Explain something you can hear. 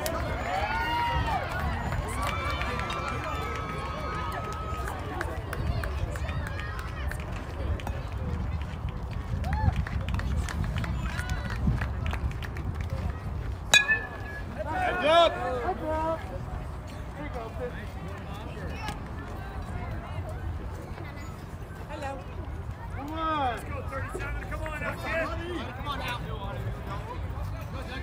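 Children and adults shout and cheer from the sideline.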